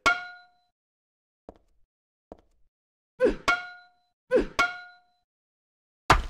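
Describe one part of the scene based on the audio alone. A metal pipe strikes a wall with a ringing clang.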